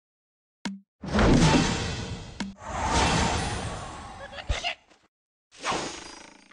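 Cartoonish crashing and bursting game sound effects play in quick succession.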